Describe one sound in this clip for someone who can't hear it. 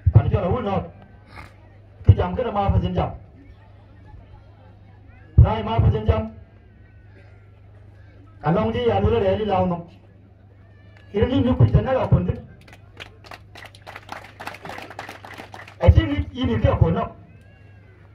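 An elderly man speaks loudly into a microphone over a loudspeaker, in short bursts with pauses.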